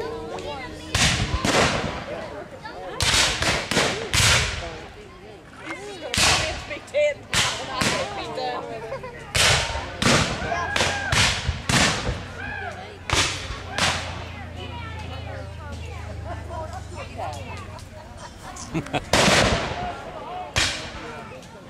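Rifles fire in loud sharp cracks, echoing outdoors.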